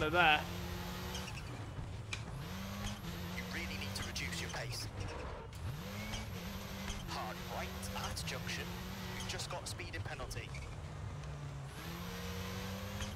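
A rally car engine roars, revving up and down through gear changes.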